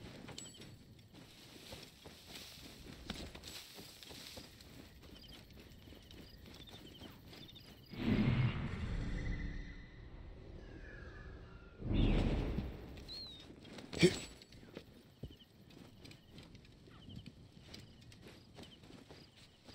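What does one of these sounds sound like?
Footsteps crunch softly over grass and dirt.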